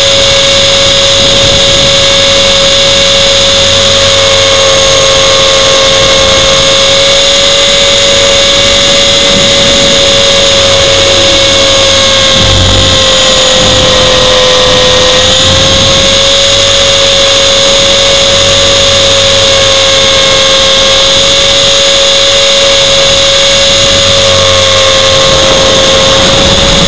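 An electric motor whines steadily, shifting slightly in pitch.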